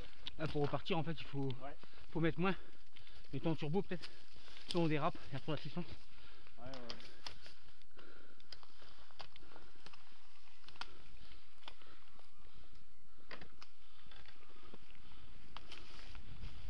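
Twigs and stones click and crack under bicycle tyres.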